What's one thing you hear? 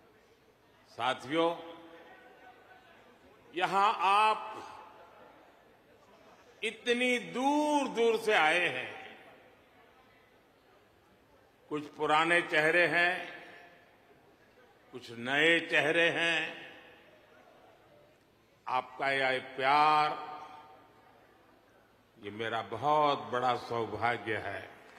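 An elderly man speaks slowly and emphatically into a microphone, in phrases with long pauses.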